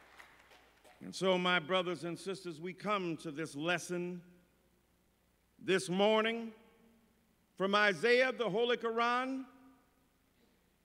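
A middle-aged man speaks with feeling into a microphone, pausing between phrases.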